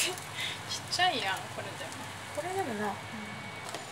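A glass lid clinks as it is lifted off a pan.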